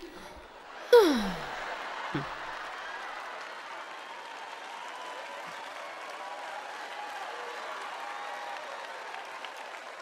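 A large audience laughs and murmurs.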